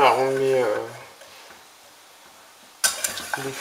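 A wire whisk stirs in a metal pot.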